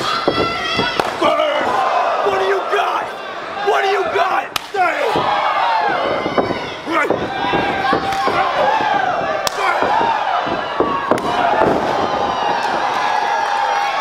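A crowd cheers and shouts loudly in a large echoing hall.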